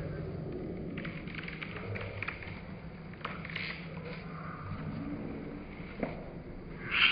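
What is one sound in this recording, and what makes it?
Paper pages rustle and flip as a book is leafed through.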